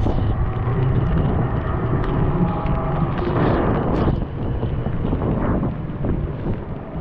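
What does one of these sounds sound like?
A tram rumbles past at close range.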